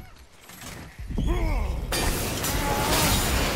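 Vines crackle and burst into flames.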